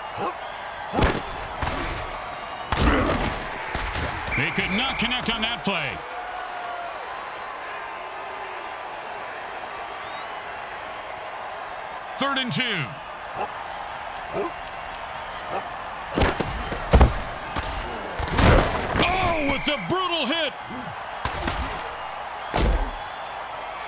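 Players collide with heavy thuds.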